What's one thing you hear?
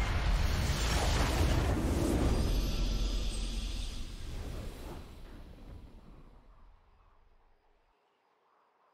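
A game's victory fanfare booms loudly and then fades away.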